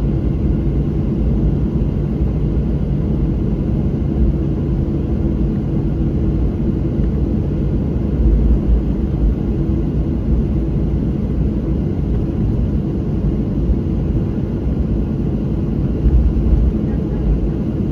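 A plane's engines rumble steadily from inside the cabin as it taxis.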